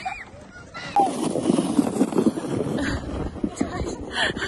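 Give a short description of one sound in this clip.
A plastic sled scrapes and hisses as it slides over snow.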